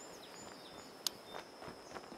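A putter taps a golf ball softly.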